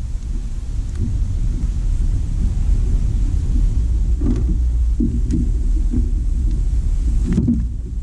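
A man handles gear with dull knocks and clatters.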